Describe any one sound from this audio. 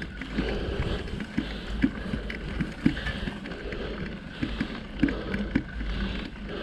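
A bicycle rattles over bumps.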